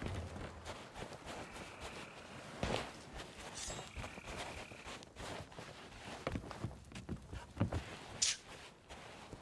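A man talks quietly and calmly into a close microphone.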